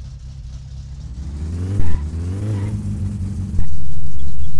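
A car engine revs up and settles back down.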